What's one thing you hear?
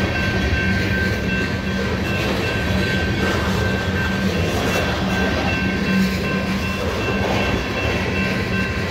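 A freight train rumbles past close by.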